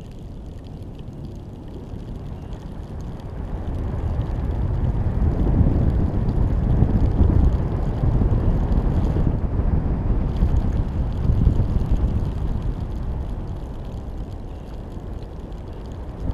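Wind rumbles and buffets loudly, swelling in the middle and easing toward the end.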